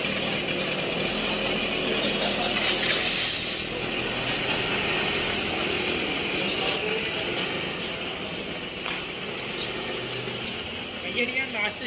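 A scooter engine idles and revs nearby, then rides away.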